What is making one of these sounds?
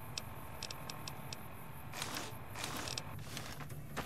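A device menu clicks and beeps.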